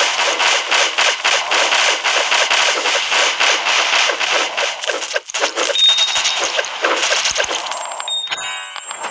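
Rapid electronic shots and small blasts crackle without pause.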